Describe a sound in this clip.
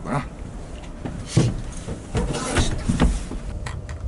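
Footsteps thud on a boat's hollow deck.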